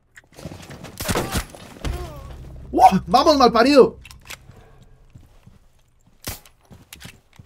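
Gunshots crack sharply a few times.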